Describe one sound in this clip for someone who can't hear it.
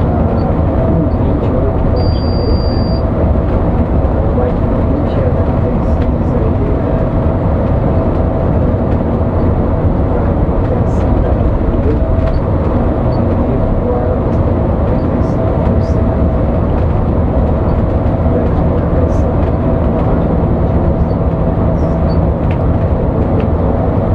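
Tyres roll with a low, steady rumble on the road.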